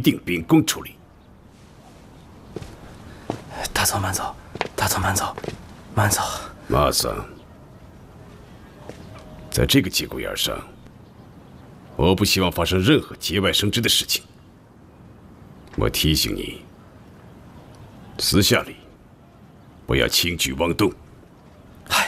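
A middle-aged man speaks firmly and calmly nearby.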